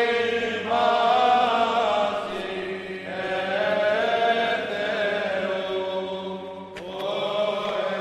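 A group of men chant together in a slow, sustained melody, echoing in a large hall.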